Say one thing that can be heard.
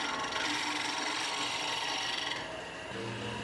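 A wire brush scrubs against spinning wood with a harsh hiss.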